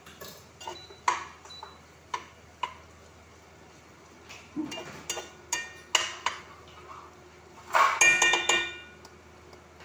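A spatula scrapes and clatters against a pan.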